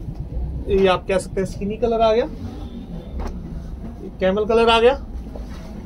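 Fabric rustles softly as it is handled and laid down.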